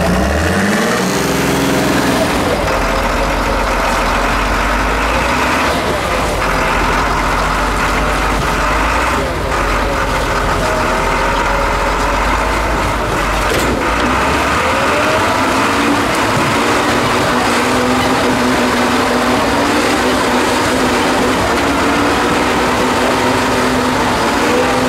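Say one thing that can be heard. Rocks crunch and grind under large tyres.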